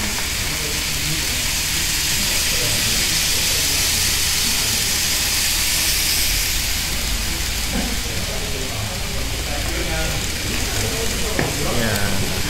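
A small model train whirs and rattles along its track.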